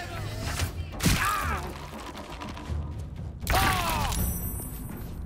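A magical strike whooshes and crackles.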